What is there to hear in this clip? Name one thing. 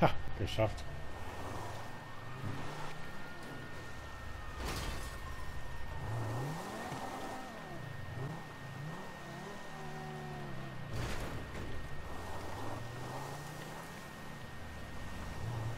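A car engine revs and roars as the car drives over rough ground.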